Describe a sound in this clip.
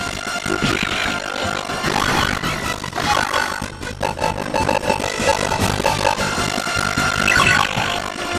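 Upbeat game music plays throughout.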